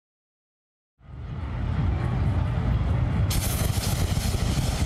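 Flames roar in bursts from tall burners.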